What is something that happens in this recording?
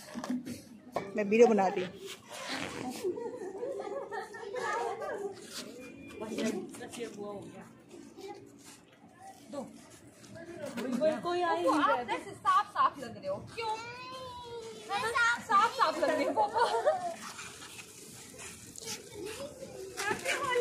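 Women talk with animation close by, outdoors.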